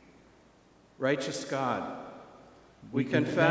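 An elderly man reads aloud calmly through a microphone in an echoing room.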